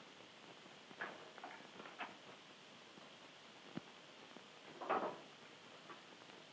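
Objects rustle and knock inside a trunk.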